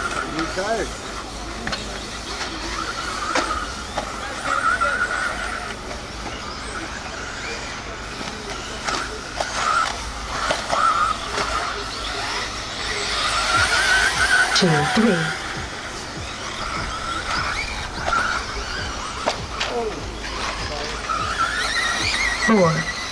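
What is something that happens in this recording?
Small electric model cars whine as they race over bumpy dirt.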